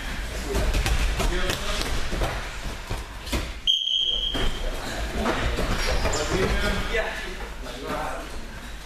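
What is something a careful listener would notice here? Bare feet thud and patter on a padded floor as people run.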